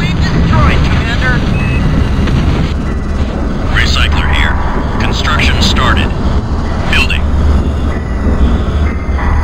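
A heavy vehicle engine rumbles low and steady.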